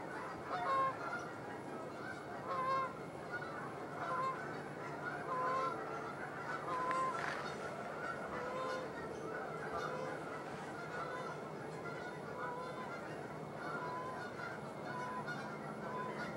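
Eagles call with repeated high, chirping cries.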